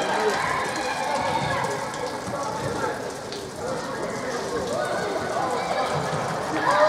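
Spectators and players shout and call out across a large echoing indoor hall.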